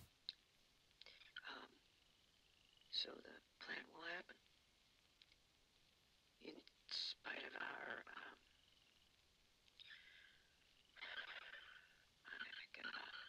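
A man speaks quietly and hesitantly, close to a microphone.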